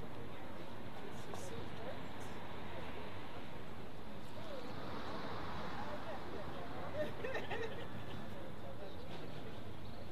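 A group of men and women talk quietly together outdoors.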